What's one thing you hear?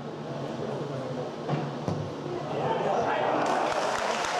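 A football is kicked with a thud.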